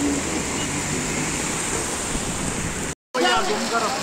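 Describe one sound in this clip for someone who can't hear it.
Water gushes and splashes loudly.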